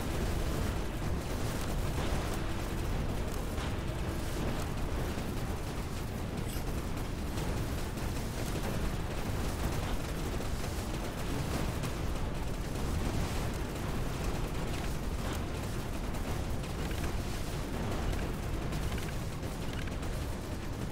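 Laser weapons fire and explosions crackle continuously in a busy battle.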